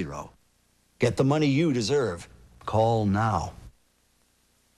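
A man speaks calmly and clearly into a microphone, close by.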